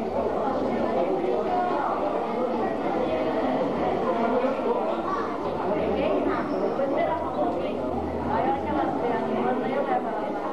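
Many adults chatter at once in a busy room.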